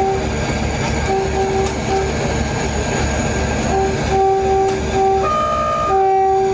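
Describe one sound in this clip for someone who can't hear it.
An electric locomotive's two-tone horn sounds in short blasts and longer notes.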